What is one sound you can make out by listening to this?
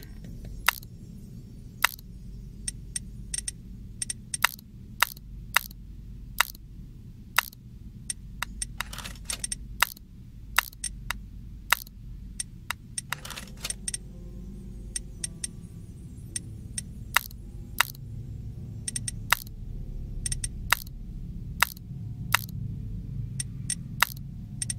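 Game pieces click sharply as they rotate.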